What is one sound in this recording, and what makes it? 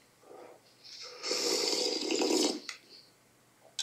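A young man slurps a drink loudly.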